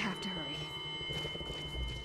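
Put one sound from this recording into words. Footsteps crunch on dirt and gravel.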